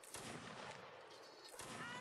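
A musket fires once.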